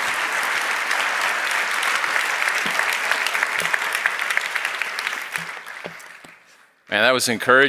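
An audience applauds in a large hall and the applause fades away.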